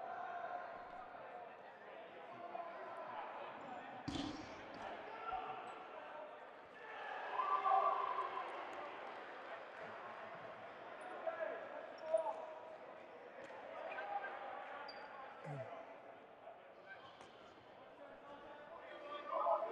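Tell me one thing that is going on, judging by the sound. Players call out and chatter across a large echoing gym.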